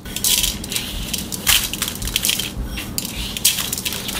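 Ground sesame seeds are sprinkled onto greens in a steel bowl.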